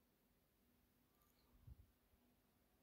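A metal spoon scrapes softly in a glass bowl.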